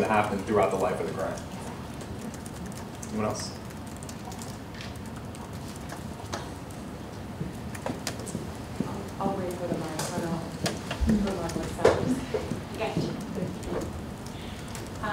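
A man speaks into a microphone, heard through loudspeakers in a large room.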